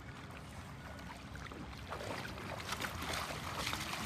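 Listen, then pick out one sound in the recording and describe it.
A dog splashes while wading out of shallow water.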